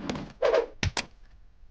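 A man speaks briefly in a low voice, close by.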